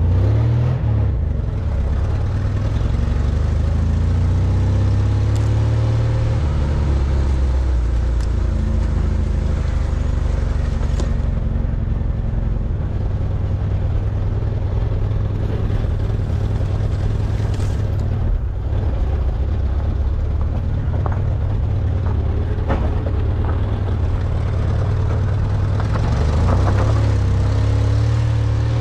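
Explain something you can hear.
Tyres roll and bump over a rough dirt track.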